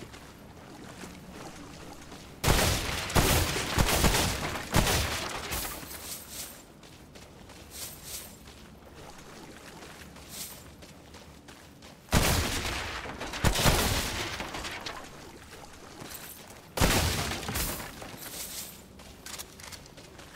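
Footsteps crunch on a wet street.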